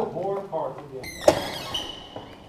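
A door latch clicks as a door swings open.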